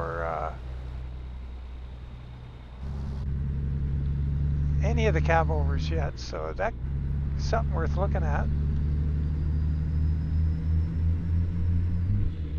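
A truck engine rumbles with a low, steady drone.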